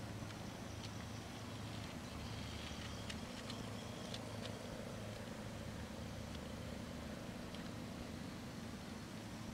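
A toy train's motor whirs steadily along a plastic track.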